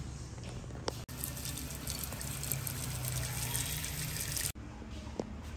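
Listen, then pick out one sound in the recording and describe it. Water pours from a tap into a pot.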